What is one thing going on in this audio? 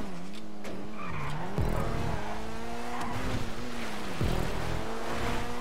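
Tyres squeal on asphalt through the turns.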